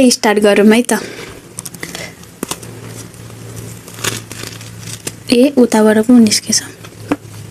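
A thin crisp flatbread crackles and crunches as it is broken.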